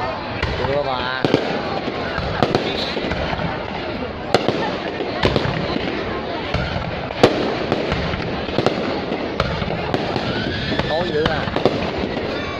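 Rockets whistle as they shoot upward.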